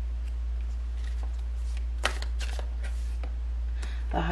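Playing cards shuffle and slide against each other.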